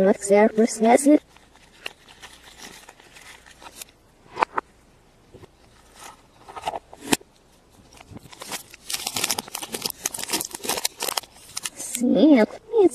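Foil wrapping crinkles as hands peel it off.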